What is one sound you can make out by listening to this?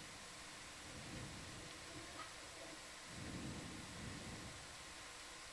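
Bubbles rumble and gurgle underwater.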